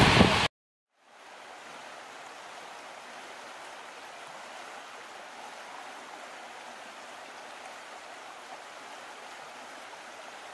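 A smaller waterfall splashes steadily over rocks.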